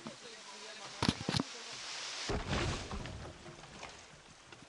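A tree creaks and crashes down.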